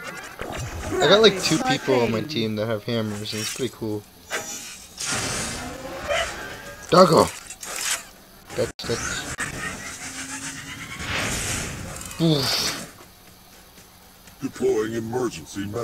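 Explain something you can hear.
Blasts and zaps from a video game battle ring out.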